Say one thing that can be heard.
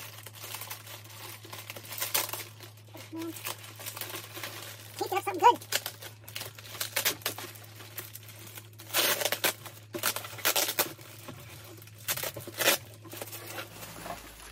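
Plastic bubble wrap crinkles and rustles as hands handle it.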